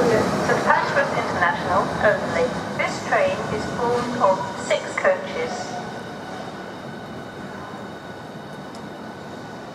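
An electric train hums as it pulls away and fades into the distance.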